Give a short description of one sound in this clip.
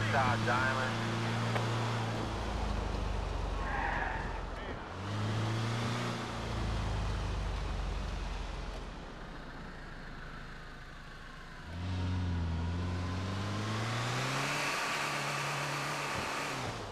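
A truck engine hums and revs, rising and falling in pitch.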